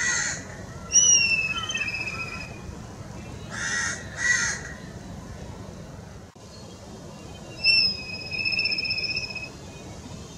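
A black kite gives a high, quavering whistle.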